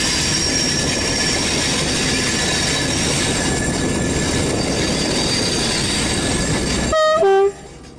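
A locomotive rumbles over rails, heard from inside the cab.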